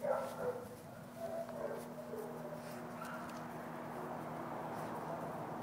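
A dog sniffs at the grass close by.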